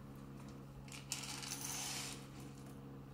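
Dry food pours into a metal bowl.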